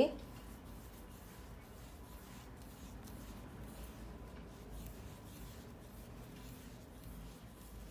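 Yarn rustles softly as it is pulled through coarse woven cloth.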